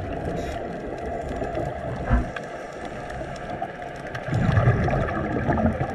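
Water swishes and rumbles, heard muffled from underwater.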